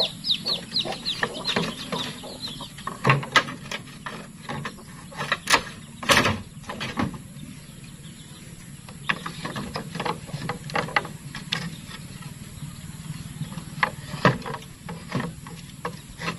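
Wooden boards knock and clatter.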